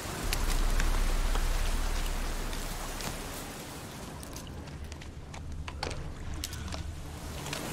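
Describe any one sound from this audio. Footsteps crunch through a forest floor.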